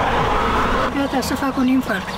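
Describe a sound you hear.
An elderly woman speaks into a nearby microphone.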